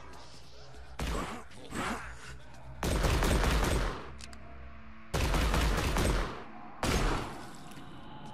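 Heavy punches thud in a brawl.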